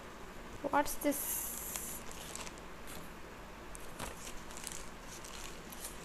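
Paper rustles as it is folded.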